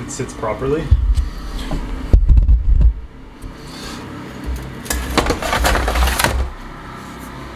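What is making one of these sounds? A metal ring clanks and scrapes against a hard floor.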